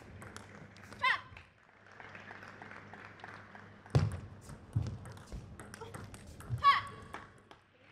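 A young woman shouts out sharply.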